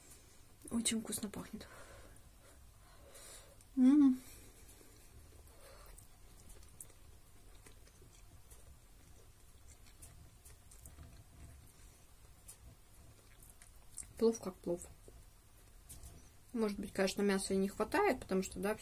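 A woman speaks softly and close to a microphone.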